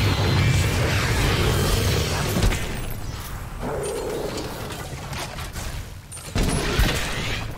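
A flamethrower roars with a loud rushing blast.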